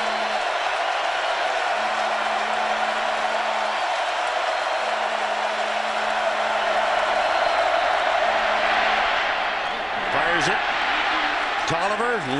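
A large stadium crowd roars steadily, swelling as a play unfolds.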